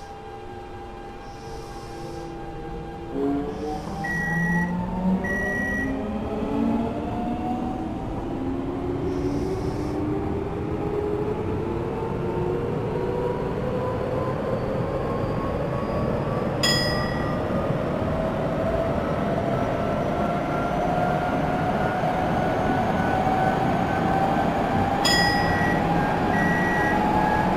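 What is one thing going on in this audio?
Train wheels rumble over rails.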